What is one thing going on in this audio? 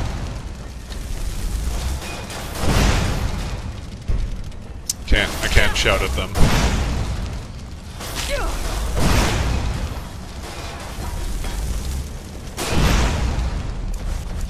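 Fire spells roar and crackle in bursts.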